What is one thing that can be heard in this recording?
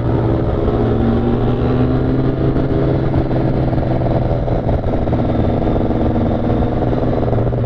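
Wind rushes past, as when riding fast outdoors.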